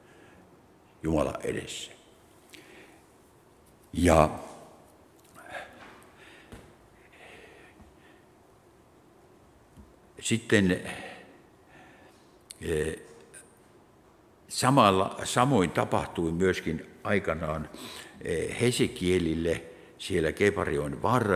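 An elderly man speaks calmly through a microphone in an echoing hall, pausing often.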